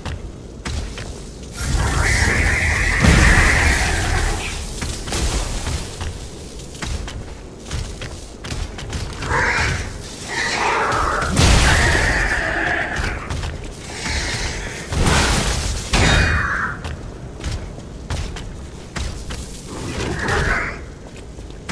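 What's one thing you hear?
A large metal machine stomps heavily and clanks.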